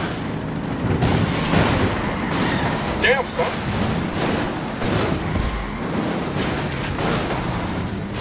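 Vehicles crash and scrape against a large truck.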